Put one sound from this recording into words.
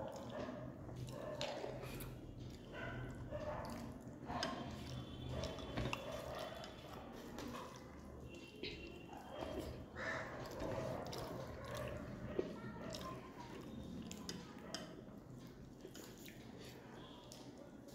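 Fingers squish and mix soft rice on a plate.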